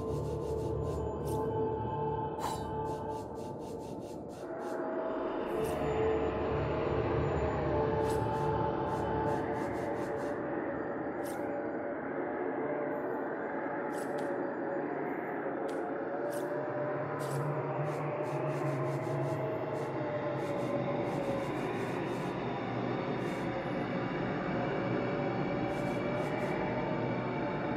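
Short soft clicks sound as menu items are picked.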